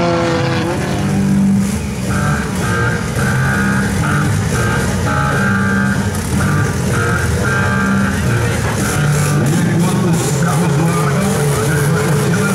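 Car engines rev loudly while idling.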